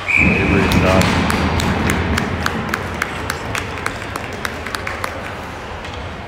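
Spectators clap and bang on the boards.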